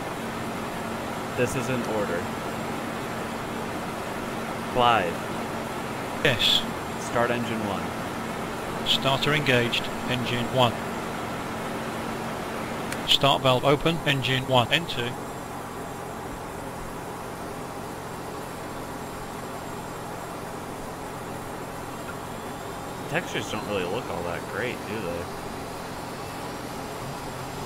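A jet airliner's engines hum steadily at idle.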